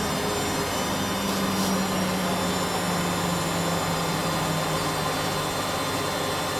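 A washing machine's motor hum slowly drops in pitch as the spin winds down.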